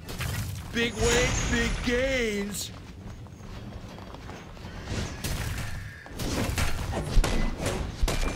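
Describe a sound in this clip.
Magical spells crackle and whoosh in a fight.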